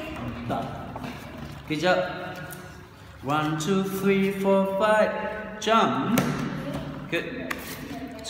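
Paper cards rustle as they are shuffled.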